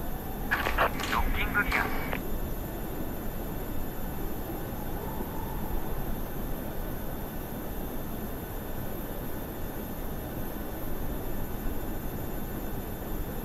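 A parked jet's engines rumble low and steady.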